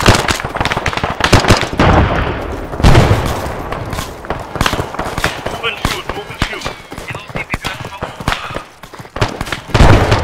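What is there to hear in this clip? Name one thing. Rifle shots crack in rapid bursts.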